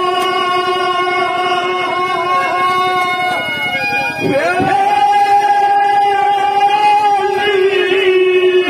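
A man sings loudly into a microphone through loudspeakers, holding long notes.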